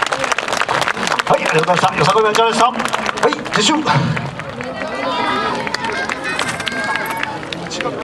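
Upbeat festival music with a steady drumbeat plays loudly through outdoor loudspeakers.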